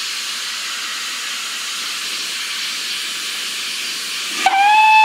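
Steam hisses steadily from a locomotive's cylinders.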